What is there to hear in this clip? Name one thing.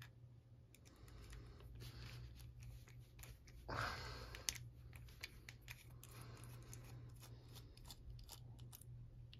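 Small metal tools click and scrape inside a lock.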